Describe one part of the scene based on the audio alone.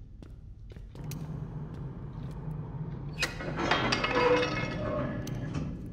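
A subway train rumbles into a station.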